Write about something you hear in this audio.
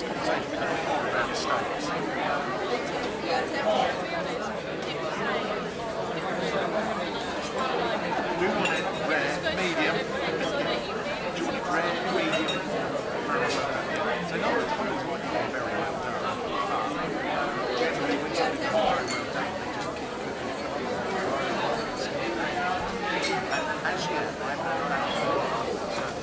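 A crowd murmurs and chatters in a busy, echoing room.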